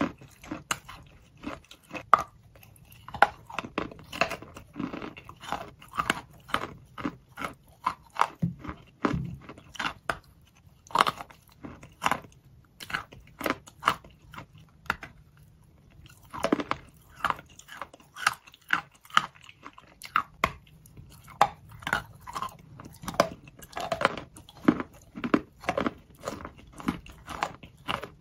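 A young woman bites and chews crunchy food with wet, crackling sounds close to a microphone.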